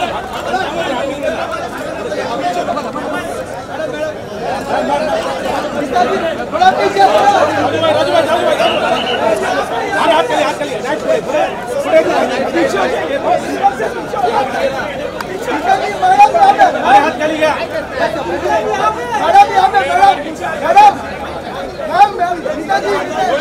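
A dense crowd of men and women talks and calls out all around, close by.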